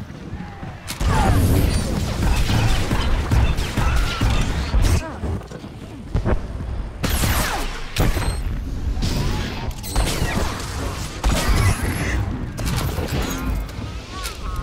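Blaster shots and energy blasts crackle and boom in a fight.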